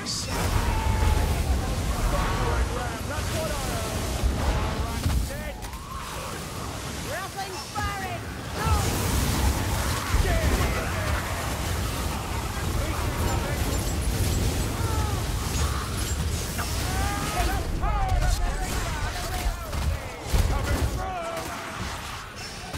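Rat-like creatures shriek and squeal.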